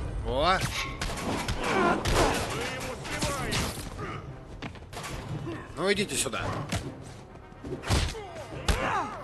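Punches and kicks land with heavy thuds in a brawl.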